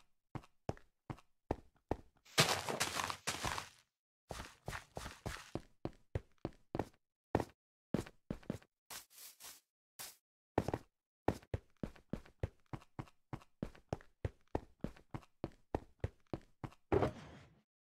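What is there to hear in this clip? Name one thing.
Footsteps tap quickly and steadily on hard ground.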